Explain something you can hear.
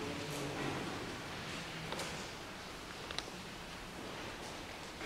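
A man chants slowly in a large echoing hall.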